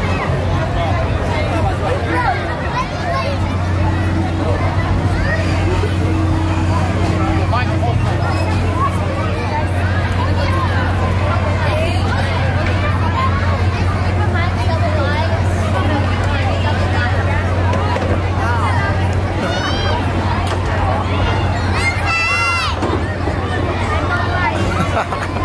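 A ride machine hums steadily.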